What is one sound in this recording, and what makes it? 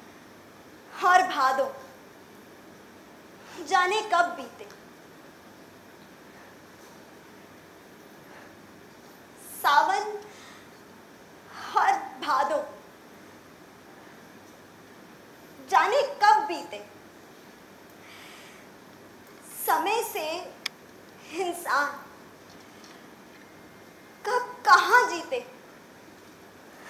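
A young woman speaks dramatically in short, emotional phrases with long pauses between them.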